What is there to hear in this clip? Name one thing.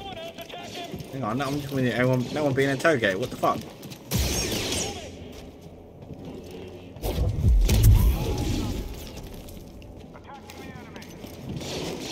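Game soldiers shout through helmet radios.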